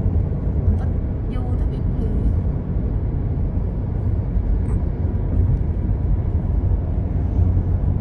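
Wind rushes and rumbles steadily past a moving vehicle.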